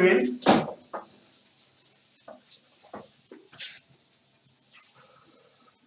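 A cloth rubs and squeaks across a whiteboard.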